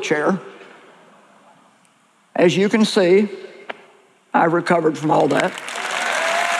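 A woman speaks with animation through a microphone in a large echoing hall.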